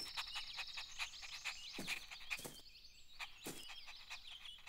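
A small dog barks.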